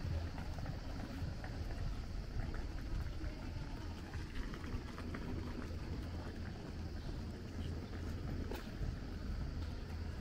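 Footsteps shuffle steadily on paving stones.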